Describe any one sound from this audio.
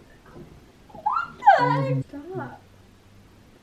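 A young woman laughs and squeals close by.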